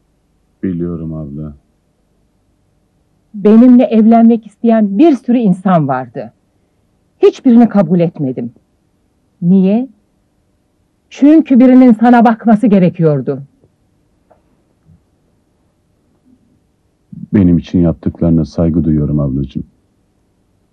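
A man speaks in a low voice, close by.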